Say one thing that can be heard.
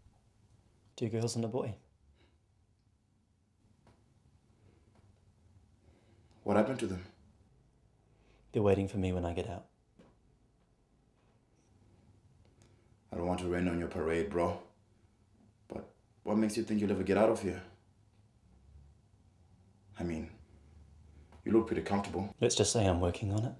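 A young man speaks quietly and tensely, close by.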